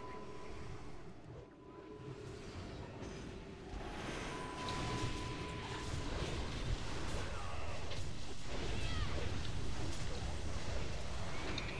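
Magic spells crackle and whoosh in a busy fight.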